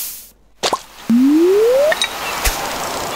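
A fishing line swishes as it is cast.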